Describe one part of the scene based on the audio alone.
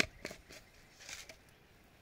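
Liquid trickles from a small bottle into a metal pot.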